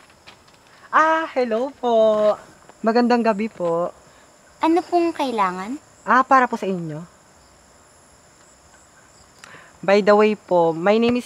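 Another young woman answers with animation nearby.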